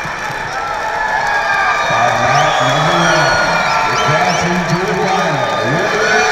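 A crowd cheers louder.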